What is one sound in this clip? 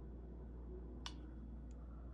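A finger presses a plastic button with a soft click.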